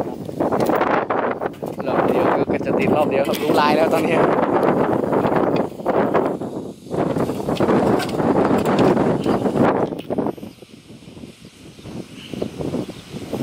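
A man scrapes loose soil by hand.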